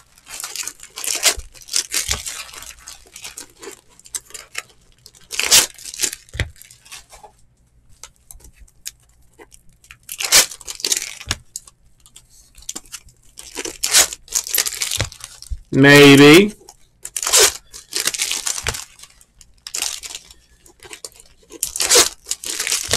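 Foil card wrappers crinkle and tear as packs are opened.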